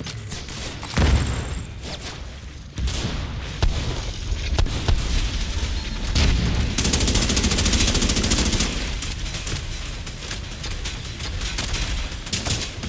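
Rapid gunfire rattles loudly, with sharp bursts one after another.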